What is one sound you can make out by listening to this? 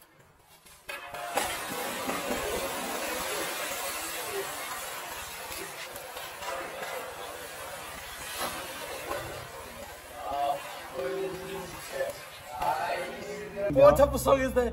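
Water churns and splashes as a person thrashes about.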